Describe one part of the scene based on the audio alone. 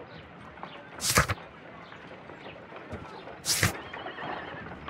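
Paper pages flip with a quick rustle.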